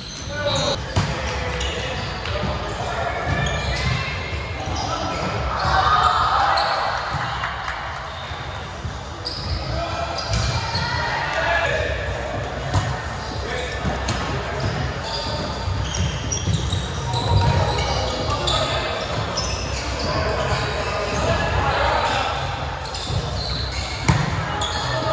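A volleyball is struck with hands.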